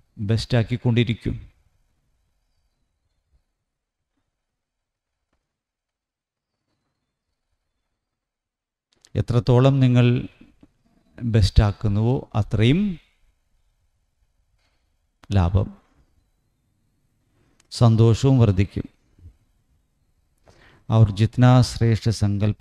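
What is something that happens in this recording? A middle-aged man reads aloud calmly into a microphone, with long pauses.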